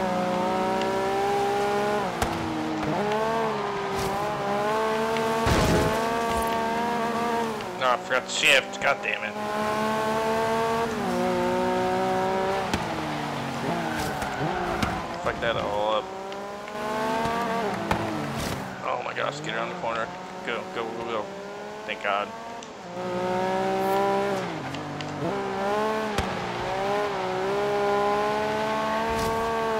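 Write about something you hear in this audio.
A car engine revs loudly, rising and falling as gears shift.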